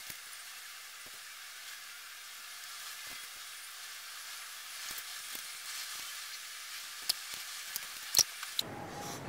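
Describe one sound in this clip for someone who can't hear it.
A hand tool clicks and taps against metal.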